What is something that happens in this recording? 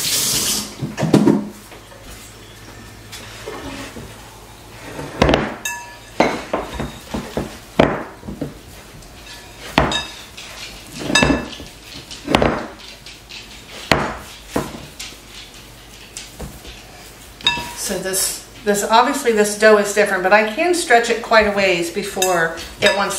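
Dough squishes and slaps as it is kneaded by hand in a bowl.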